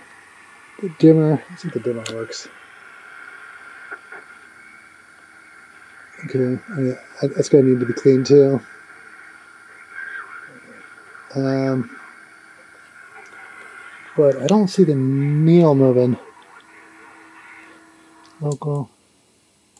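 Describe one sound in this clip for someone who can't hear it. A knob clicks as it is turned.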